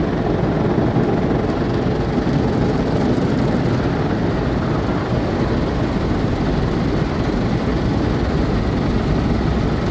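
Rotating car wash brushes swish and slap against the car.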